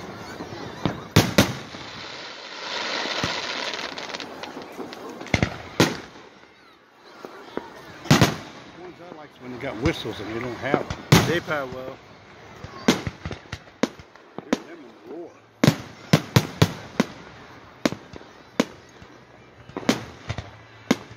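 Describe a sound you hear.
Fireworks burst with loud booming bangs.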